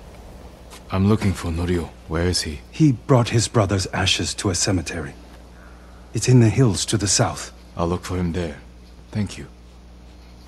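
A man answers in a low, calm voice.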